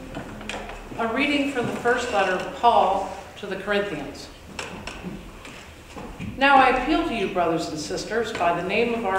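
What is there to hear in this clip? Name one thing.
An older woman reads aloud calmly through a microphone in a large echoing room.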